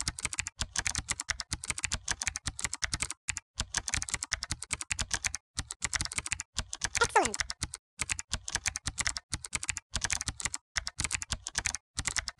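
Quick, bright popping clicks patter on and off in rapid bursts.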